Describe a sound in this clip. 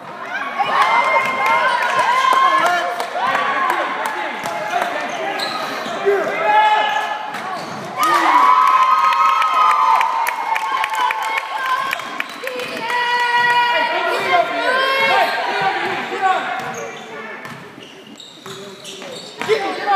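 Spectators shout and cheer in an echoing gymnasium.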